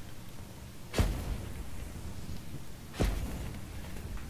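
A heavy booming thud sounds twice as armoured fighters land.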